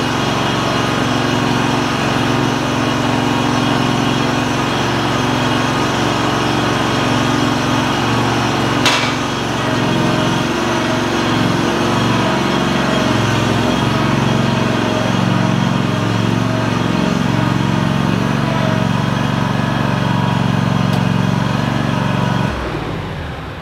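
A mower engine runs steadily and loudly, then shuts off.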